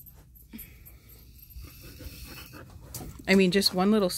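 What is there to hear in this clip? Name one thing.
A metal comb rakes softly through a dog's thick fur.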